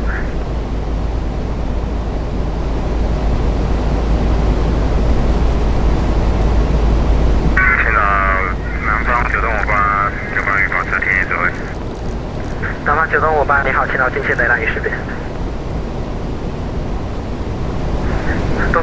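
Jet engines hum and roar steadily.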